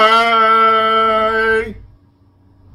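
A man close by sings a long, steady note.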